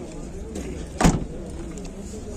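A car trunk lid thuds shut.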